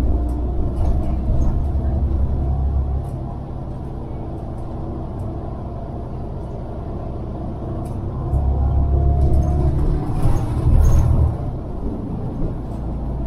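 Cars drive past on a road nearby, their tyres humming.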